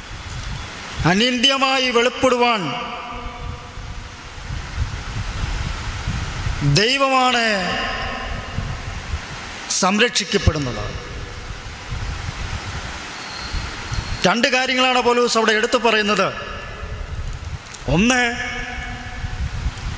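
A man speaks into a microphone in short, drawn-out phrases, with echo in a bare room.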